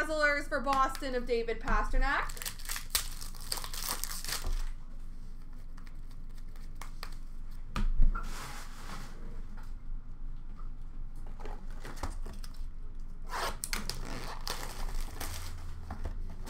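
Plastic-wrapped card packs rustle and crinkle in someone's hands.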